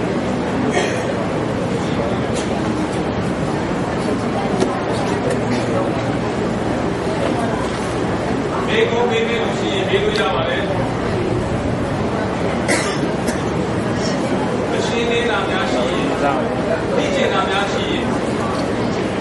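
An elderly man speaks calmly into a microphone, heard through a loudspeaker in an echoing room.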